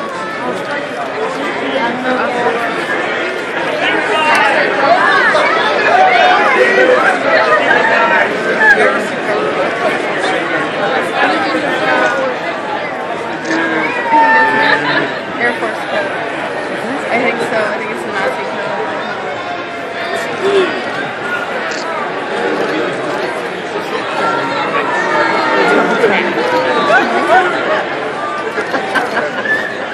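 A large crowd of men and women chatters loudly all around in a big echoing hall.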